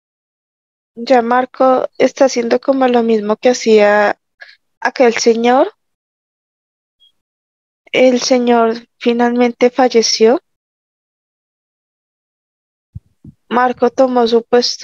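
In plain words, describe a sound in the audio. A man speaks calmly over an online call, heard through a headset microphone.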